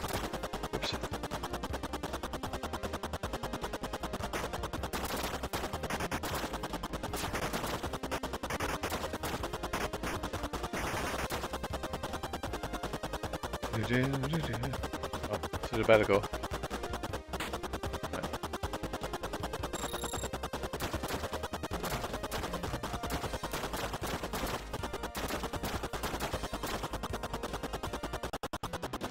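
Rapid electronic shots fire steadily in a retro video game.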